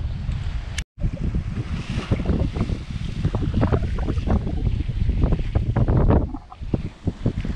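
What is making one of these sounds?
Waves splash and slosh against rocks close by.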